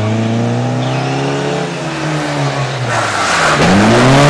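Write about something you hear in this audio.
A rally car engine revs hard as the car pulls away.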